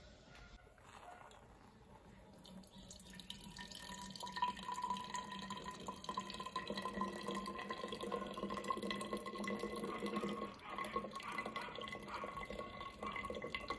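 Hot liquid pours and splashes through a cloth strainer.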